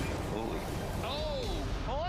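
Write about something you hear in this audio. An older man talks outdoors.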